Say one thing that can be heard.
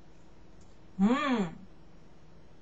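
A young woman hums a rising and falling tone with her mouth closed.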